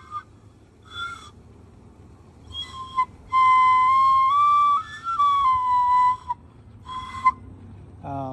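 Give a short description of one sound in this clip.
A whistle plays short, high piping notes up close.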